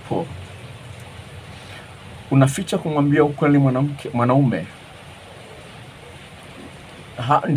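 A middle-aged man speaks calmly and closely into a microphone, as over an online call.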